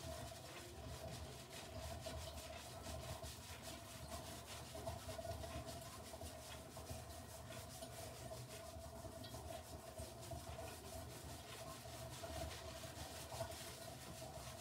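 Fingers rub and squish through wet, foamy hair.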